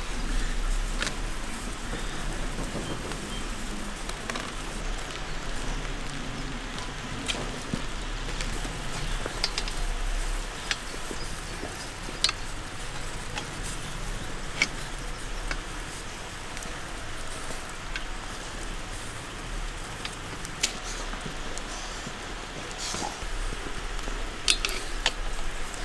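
Metal skewers clink against a metal grill rim.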